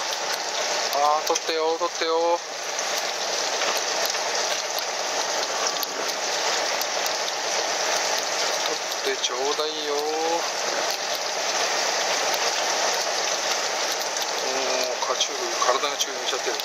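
Men call out to each other on deck, a little way off.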